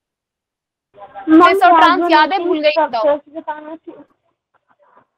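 A young woman speaks calmly through a microphone, as on an online call.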